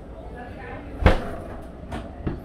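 A drawer slides open with a thud.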